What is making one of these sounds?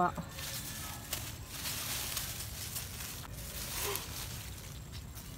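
Leaves rustle as a hand pushes through plants.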